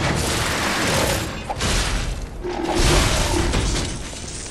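A weapon strikes metal with loud clangs.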